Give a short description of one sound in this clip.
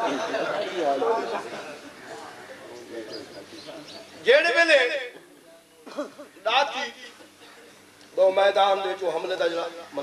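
A man speaks passionately into a microphone, his voice rising and falling in a reverberant hall.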